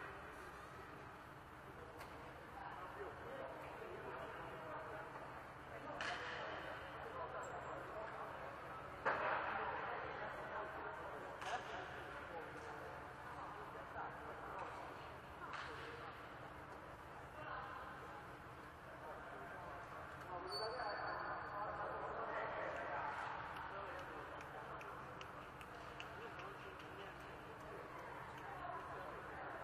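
Players call out and voices echo around a large hall.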